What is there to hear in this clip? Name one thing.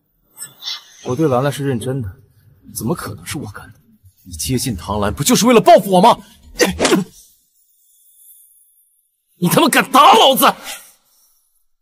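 A young man shouts angrily up close.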